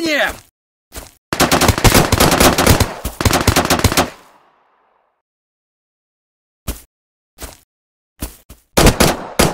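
A pistol fires single sharp shots.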